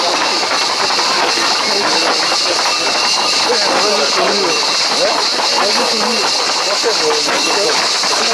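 A crowd of young men shouts and chatters outdoors.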